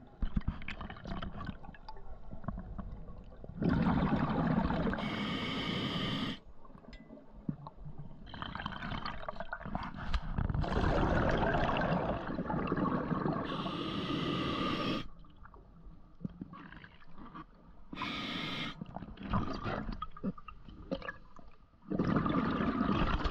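Water rushes and gurgles close by, heard from underwater.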